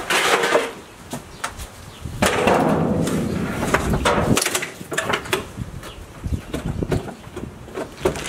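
Loose debris clatters and knocks on a wooden porch floor.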